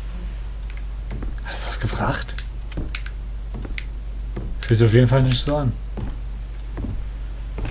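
Footsteps tap slowly on a wooden floor.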